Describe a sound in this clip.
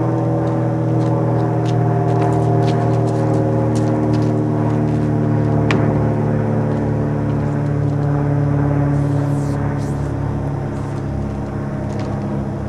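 An aerosol spray paint can hisses.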